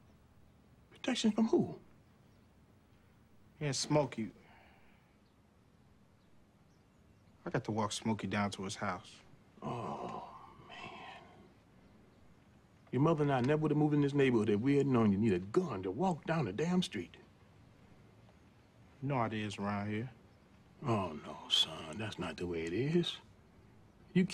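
A middle-aged man speaks with a heavy, expressive tone nearby.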